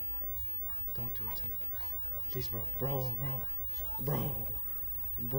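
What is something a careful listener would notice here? A young man talks into a close microphone, quietly at first and then with more animation.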